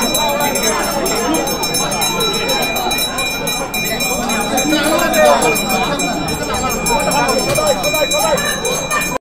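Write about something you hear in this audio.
A crowd of people chants and calls out together close by.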